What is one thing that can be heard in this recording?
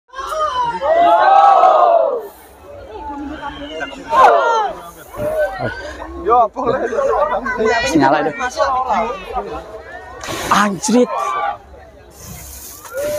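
A crowd of young men and women shouts and cheers close by, outdoors.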